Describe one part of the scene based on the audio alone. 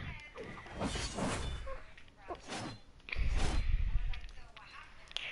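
Sword slashes swoosh and strike with sharp hits.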